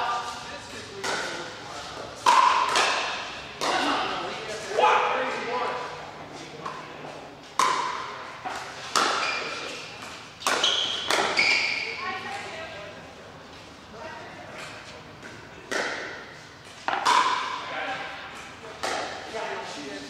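Paddles pop sharply against a plastic ball, echoing around a large hall.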